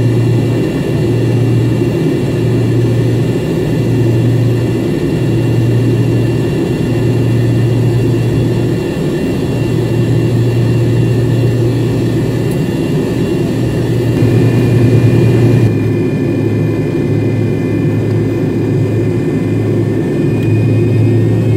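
Jet engines hum and whine steadily inside an airliner cabin.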